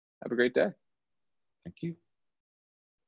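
A man speaks briefly through an online call.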